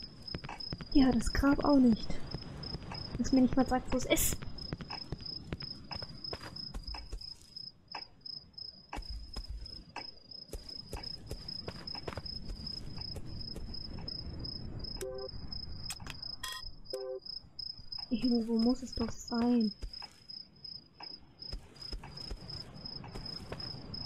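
Footsteps tread slowly over rough ground.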